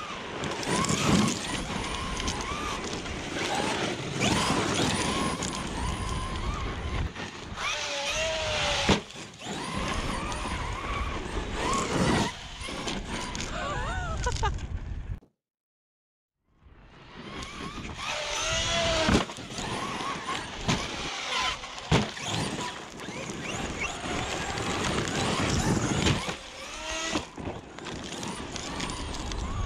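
An electric motor whines and revs up and down.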